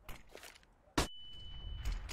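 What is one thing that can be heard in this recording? A grenade bursts with a sharp bang.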